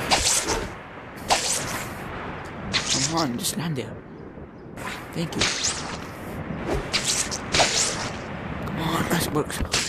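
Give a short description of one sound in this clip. A web line shoots out with a quick whoosh, again and again.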